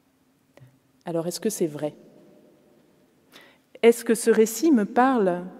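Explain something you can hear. A woman speaks calmly and clearly into a microphone in a large echoing hall.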